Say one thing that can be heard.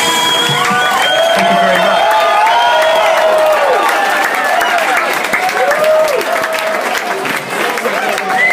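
A large crowd sings and cheers loudly outdoors.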